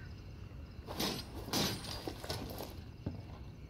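A metal barred gate creaks open.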